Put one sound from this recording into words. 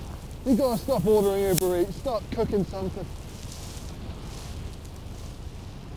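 A body slides and scrapes over packed snow.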